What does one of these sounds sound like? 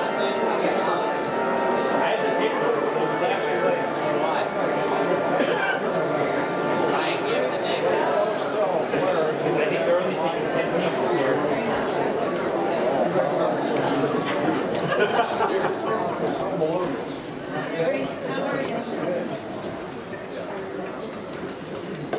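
A large audience murmurs and chatters in an echoing hall, then grows quieter.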